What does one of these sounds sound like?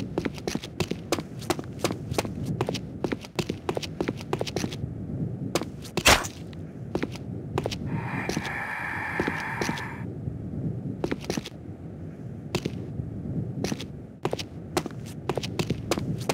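Footsteps thud steadily and clank up metal stairs.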